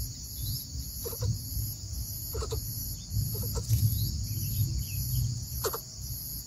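A bird gives short, soft chirps in pairs, close by.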